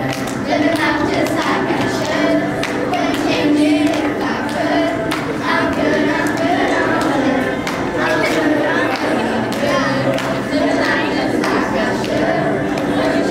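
A group of young girls sings together.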